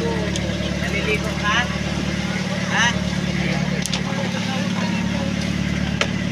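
An outrigger boat's engine drones at cruising speed.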